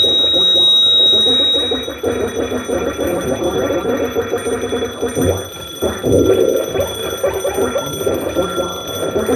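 A drum kit is played loudly in a live room.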